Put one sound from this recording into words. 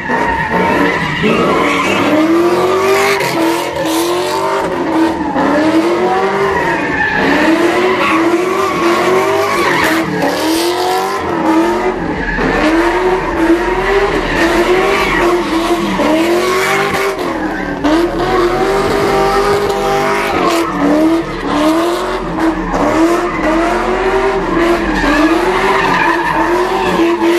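Tyres screech on the pavement as a car spins.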